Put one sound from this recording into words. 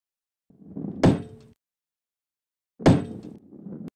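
A ball lands with a dull thud.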